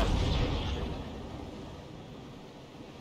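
Cannons fire with a loud, rumbling boom that fades away.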